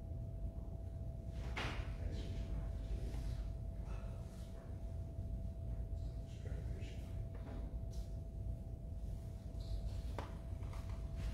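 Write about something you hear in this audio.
A man speaks quietly at a distance in a large echoing room.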